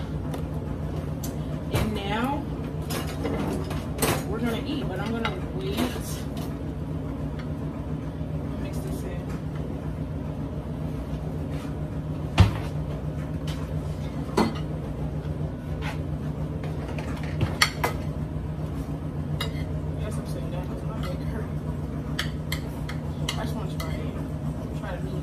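Items knock and tap on a countertop.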